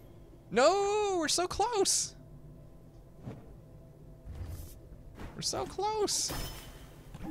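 A bright electronic chime rises and falls.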